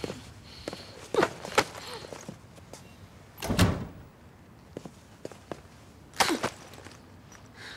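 A bag thuds onto a carpeted floor.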